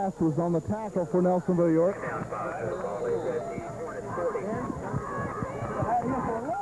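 A crowd talks and cheers in the open air.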